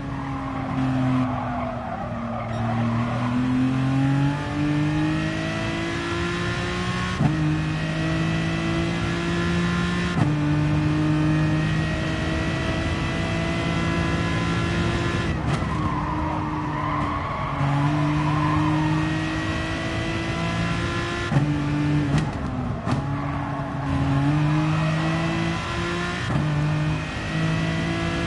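A racing car engine revs high, rising in pitch through each gear and dropping sharply at each gear change.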